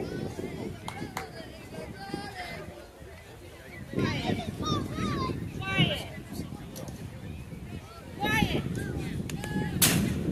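Young players and spectators shout and cheer outdoors.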